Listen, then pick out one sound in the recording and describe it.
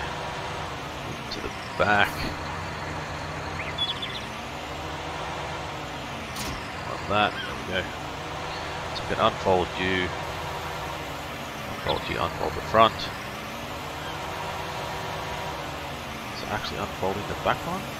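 A mower clatters as it cuts grass.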